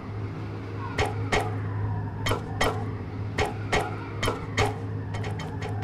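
Footsteps tap on a metal walkway.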